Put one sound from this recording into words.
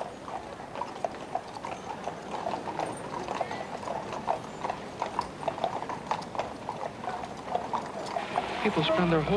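Soldiers' boots march in step on pavement.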